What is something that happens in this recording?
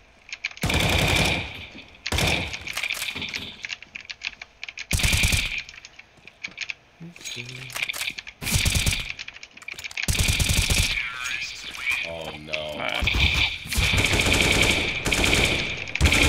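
Rapid gunshots crack from a rifle close by.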